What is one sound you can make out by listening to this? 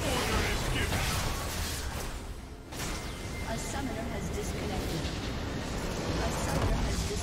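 Game battle effects clash and crackle rapidly.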